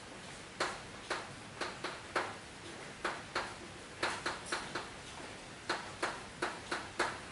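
Chalk taps and scratches sharply on a blackboard.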